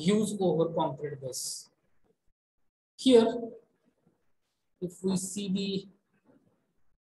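A man speaks calmly into a microphone, lecturing in short bursts.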